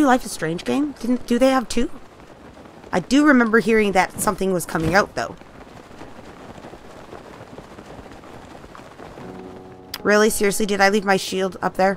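Wind rushes softly past a paraglider in flight.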